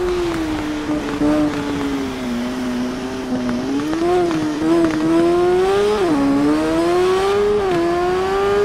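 A motorcycle engine roars at high speed, its pitch rising and dropping as gears shift.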